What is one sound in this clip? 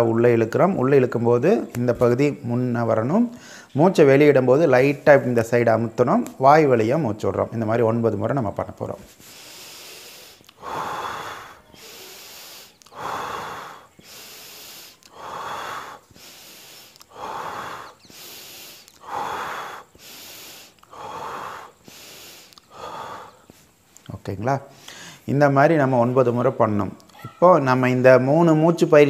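A man speaks calmly and clearly close to a microphone.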